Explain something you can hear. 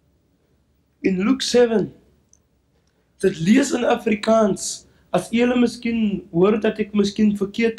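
A young man speaks into a microphone over a loudspeaker.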